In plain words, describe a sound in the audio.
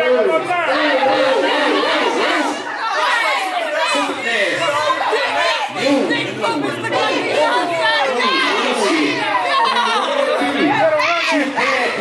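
A man raps loudly through a microphone and loudspeakers.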